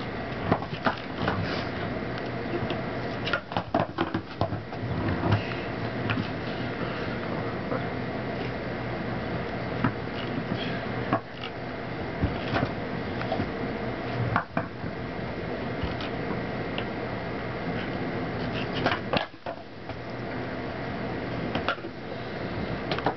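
Skateboard wheels roll and clack on a concrete path.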